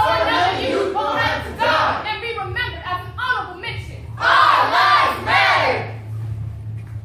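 Young performers chant together loudly in a hall.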